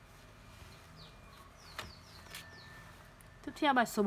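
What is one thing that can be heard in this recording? Paper rustles as a page is handled.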